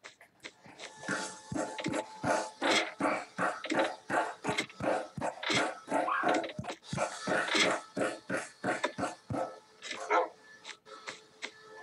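Footsteps patter quickly in a video game.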